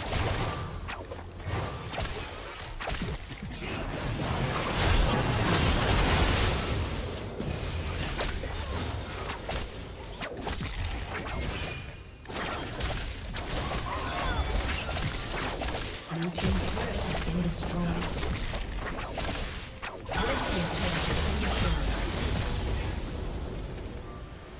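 Video game spell and attack effects clash and burst in a busy fight.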